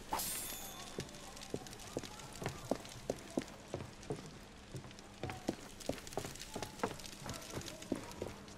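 Footsteps walk briskly across a stone floor.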